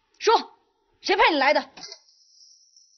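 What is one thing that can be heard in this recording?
A man shouts a sharp command.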